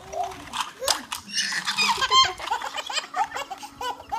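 Plastic toys clack together.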